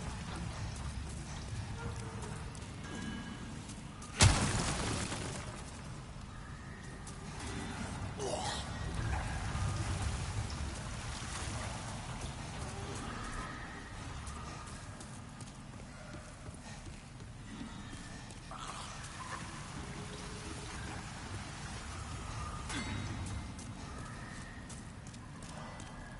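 Footsteps run across stone and wooden floors.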